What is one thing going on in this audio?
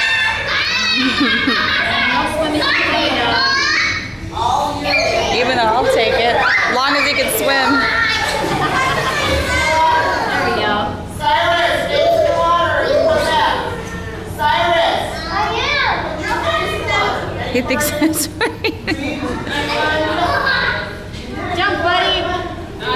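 A woman talks encouragingly close by.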